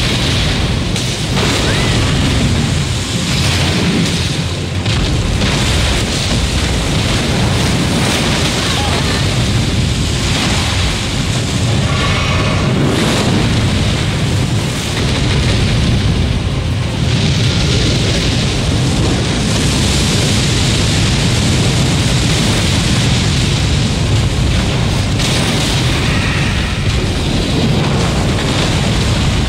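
A sword swings and clangs repeatedly against a huge beast.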